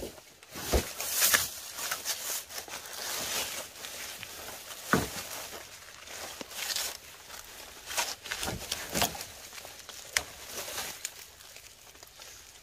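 Bamboo bark rips and tears as it is stripped.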